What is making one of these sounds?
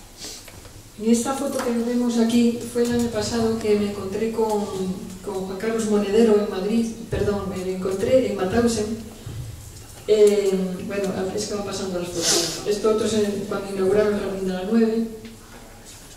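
An elderly woman speaks calmly through a microphone and loudspeaker.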